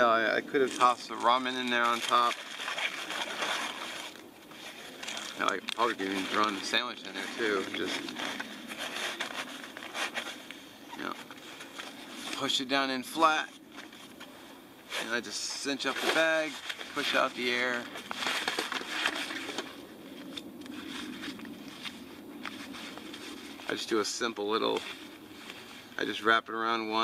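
A fabric pouch rustles as it is handled.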